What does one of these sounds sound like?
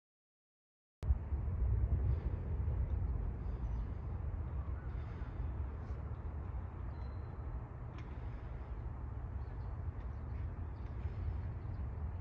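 Wind rumbles steadily outdoors in an open space.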